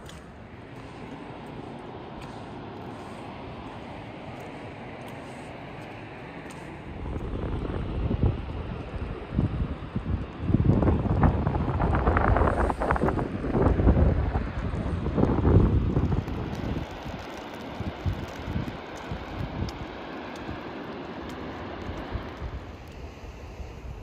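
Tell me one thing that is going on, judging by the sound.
A distant waterfall rushes steadily.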